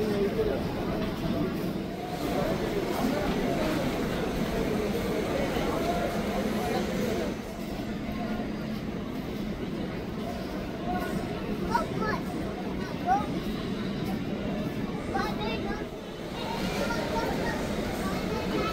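A busy indoor crowd murmurs in a large echoing hall.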